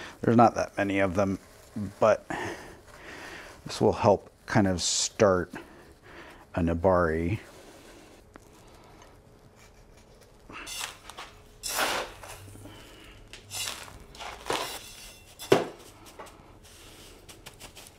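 Gravel crunches and rattles as hands work it.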